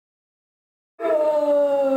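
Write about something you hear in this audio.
A man sings loudly.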